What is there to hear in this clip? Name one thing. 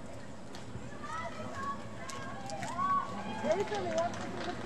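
People in a crowd chatter outdoors nearby.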